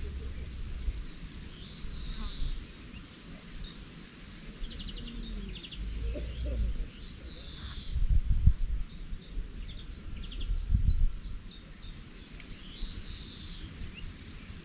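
Wind gusts outdoors and buffets the microphone.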